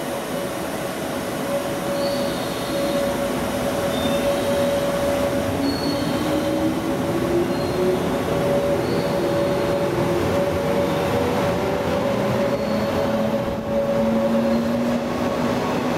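An electric train pulls into a station with a rising motor whine.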